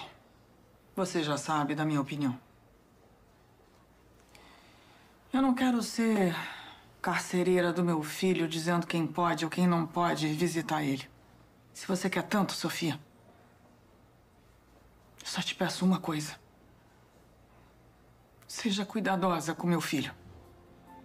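A middle-aged woman speaks firmly at close range.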